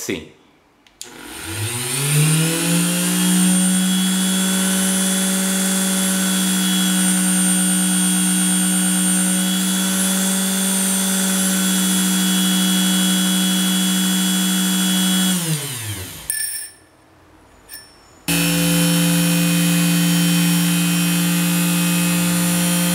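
A small rotary tool motor whirs up to a steady high whine, winds down, then starts again.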